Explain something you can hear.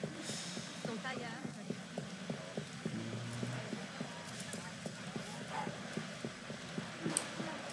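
Quick footsteps run on cobblestones.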